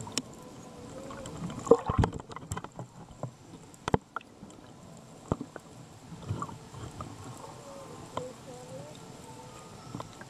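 A whale calls with faint rising and falling moans.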